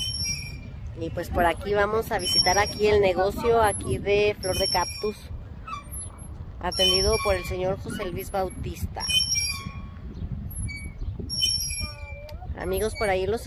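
A young girl talks in a high, excited voice nearby.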